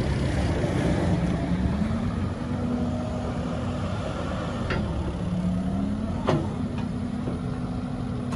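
Hydraulics of an excavator whine as the arm swings.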